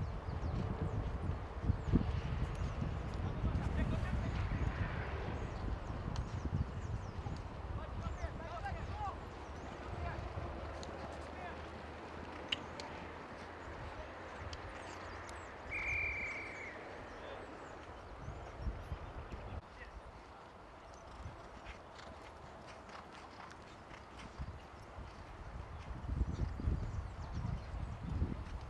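Horses gallop over grass in the distance, their hooves thudding softly.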